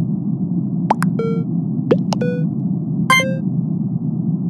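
A game's chat gives short chimes as new messages arrive.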